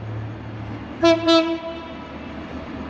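A train horn blasts twice from a distance.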